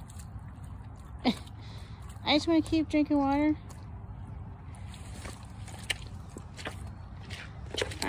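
A dog laps water from a puddle.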